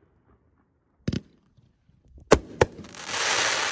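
A firework bangs loudly.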